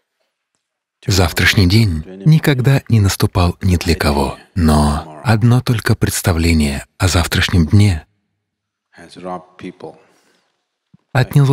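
An elderly man speaks calmly and deliberately into a microphone.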